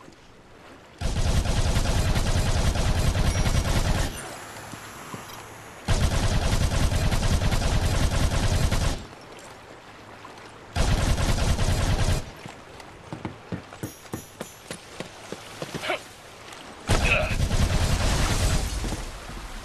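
Guns fire rapidly in loud, dense bursts.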